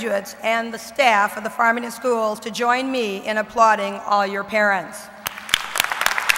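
A woman speaks calmly into a microphone in a large echoing hall.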